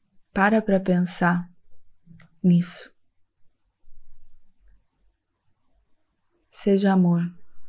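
A young woman speaks softly and closely into a microphone, in short phrases with pauses.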